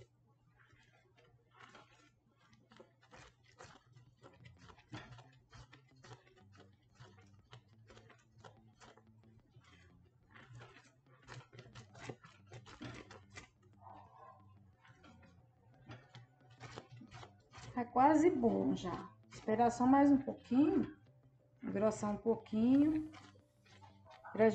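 A spoon scrapes and knocks against a metal pot while stirring a thick mixture.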